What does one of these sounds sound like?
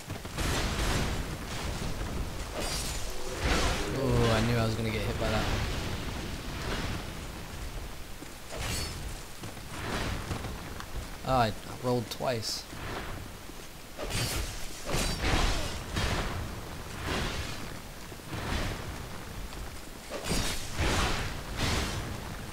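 Armored footsteps clank on stone.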